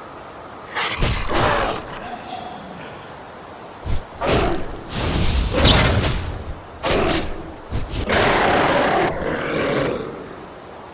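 Sword blows slash and thud against a beast.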